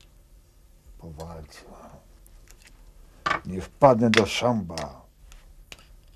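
An elderly man speaks in a low voice, close by.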